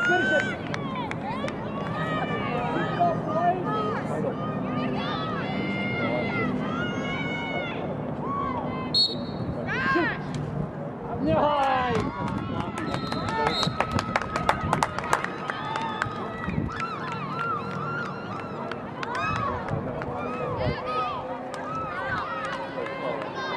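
Young women shout to each other across an open playing field.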